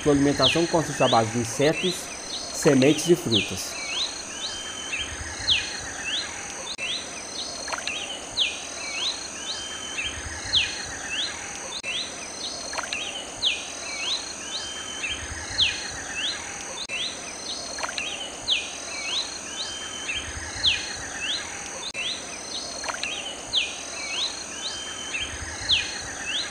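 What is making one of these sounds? A small bird chirps in short, quick repeated calls.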